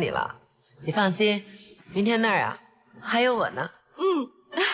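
A middle-aged woman speaks reassuringly, close by.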